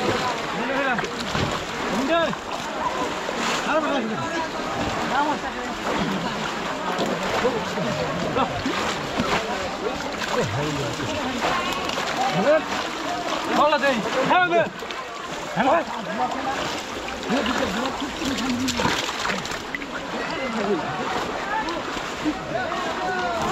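Muddy water splashes as people wade and dig with their hands.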